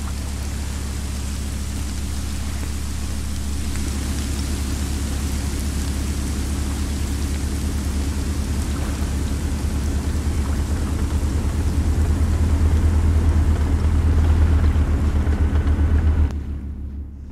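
A ship's engine rumbles deeply and steadily, growing louder, then drops away.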